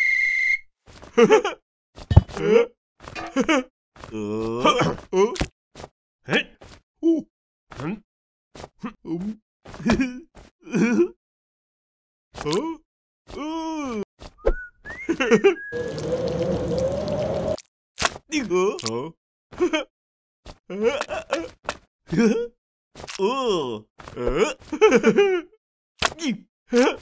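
A young man shouts and laughs with animation.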